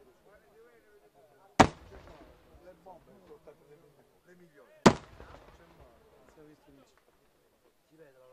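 Firecrackers crackle and pop in the air.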